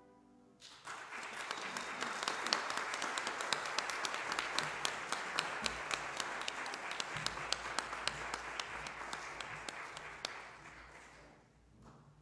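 A crowd applauds warmly in a large echoing hall, then the clapping fades out.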